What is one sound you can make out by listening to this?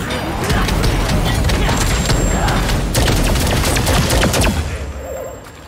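Fiery spell blasts crackle and roar in a loud fight.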